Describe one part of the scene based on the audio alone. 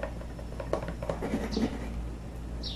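A plastic tub clatters lightly as a hand handles it.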